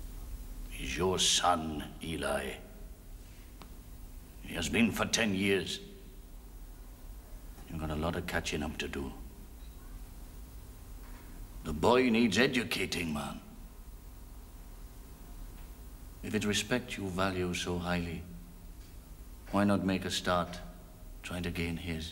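A man speaks calmly in short phrases with pauses.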